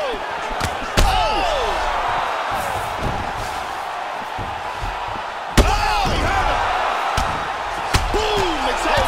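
Punches land with heavy thuds on bare skin.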